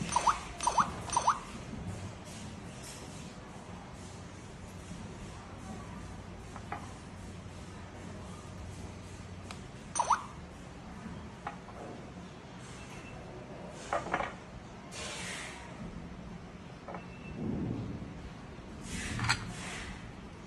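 A small electronic device beeps in short high tones.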